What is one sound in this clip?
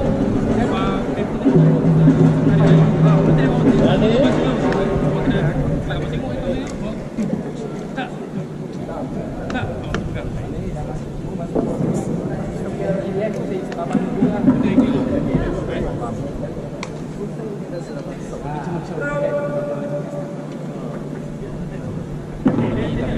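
A live band plays loudly in a large echoing hall.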